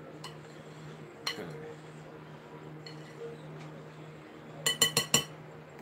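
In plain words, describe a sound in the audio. A fork scrapes and clinks against a bowl.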